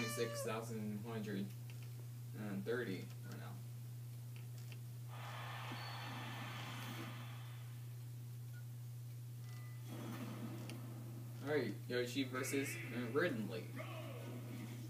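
Video game sounds play from a television speaker nearby.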